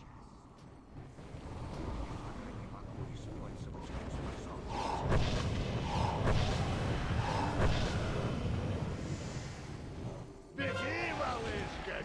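Magic spells crackle and boom amid a busy battle.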